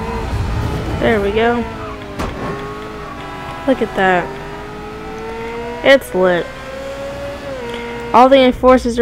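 A car engine hums and revs as a car drives along.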